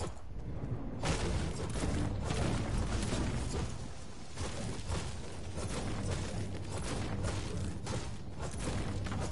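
A pickaxe thuds repeatedly against wood and leaves.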